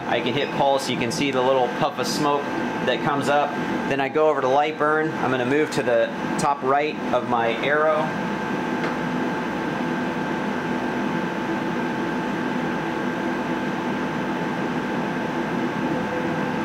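A laser engraving machine hums steadily.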